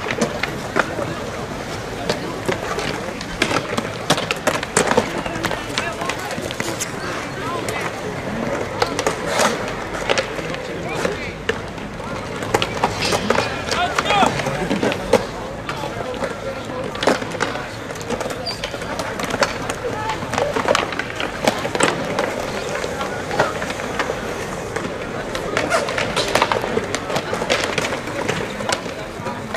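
Skateboards clack and slap down onto concrete.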